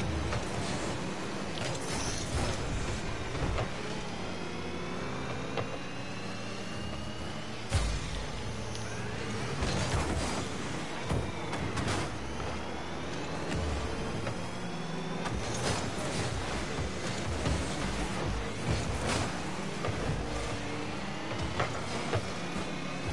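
A video game car engine hums and roars with boost.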